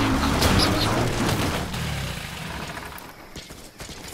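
A vehicle engine roars and rattles as it tumbles and crashes.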